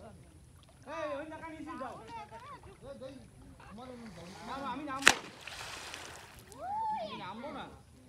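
Water splashes as a man wades and pushes through a pond.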